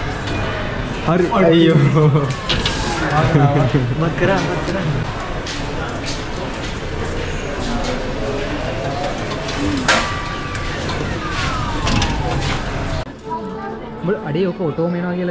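Young men talk and laugh close by.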